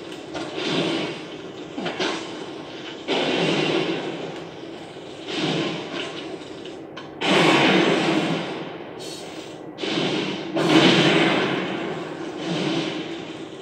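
A whip-like chain weapon whooshes and lashes through the air.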